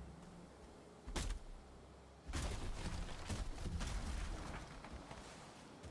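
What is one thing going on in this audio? A tree creaks, falls and crashes to the ground.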